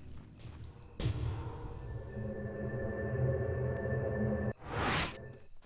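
Magic spell effects hum and shimmer.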